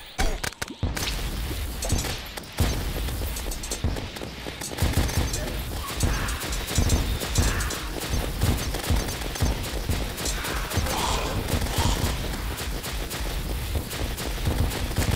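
Rapid video game weapon fire and explosions crackle and thump.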